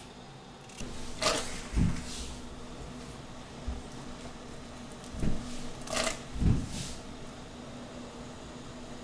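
Water bubbles in a pot.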